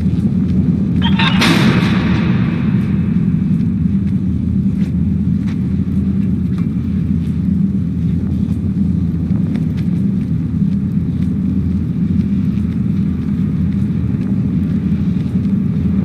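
Small footsteps patter on wooden crates.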